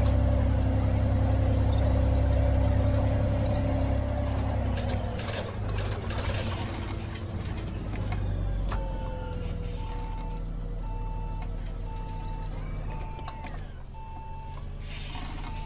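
A bus engine drones steadily as the bus drives along, easing off after a few seconds.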